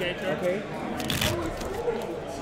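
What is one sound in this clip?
Dice rattle in a hand.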